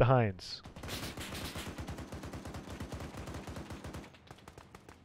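A heavy machine gun fires in a rapid burst.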